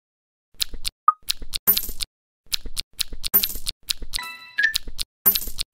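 Cartoon game sound effects chime and pop.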